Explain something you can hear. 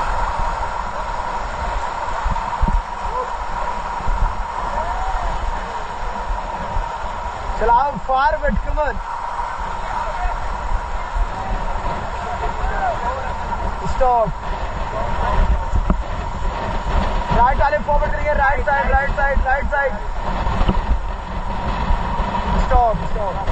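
Fast river water rushes and churns nearby.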